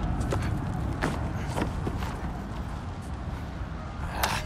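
A boy clambers over a wooden wall with a thud.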